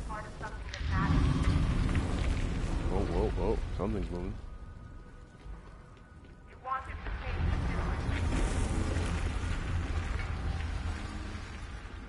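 Gunfire and explosions rumble loudly.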